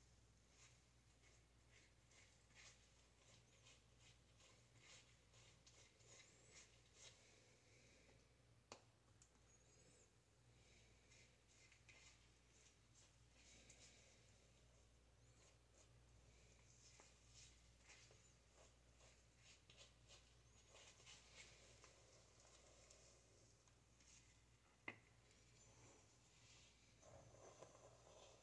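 A brush swishes and rustles through hair, close by.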